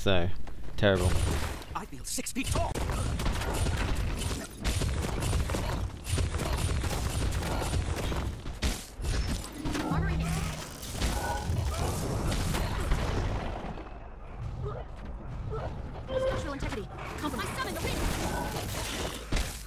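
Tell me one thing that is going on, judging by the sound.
Magic blasts crackle and burst in a rapid fight.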